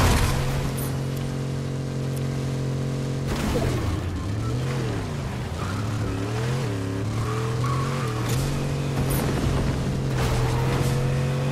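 A car engine roars steadily, then revs up and down.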